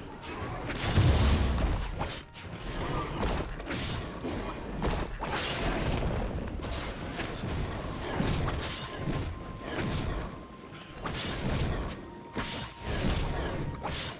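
Magic attacks strike a monster with repeated sharp hits and whooshes.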